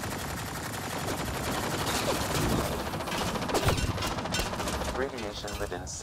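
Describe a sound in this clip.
Laser gunfire crackles in rapid bursts.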